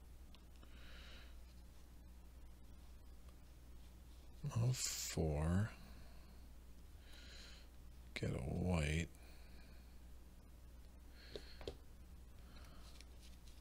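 Playing cards are shuffled and flicked by hand.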